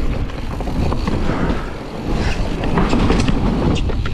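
Bicycle tyres clatter over wooden planks.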